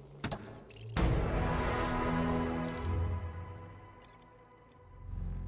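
A heavy chest creaks open with a deep rumble.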